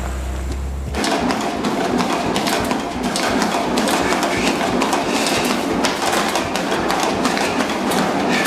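Footsteps thump steadily on a running treadmill.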